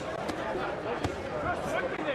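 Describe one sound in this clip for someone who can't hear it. A punch thuds against a boxer's body.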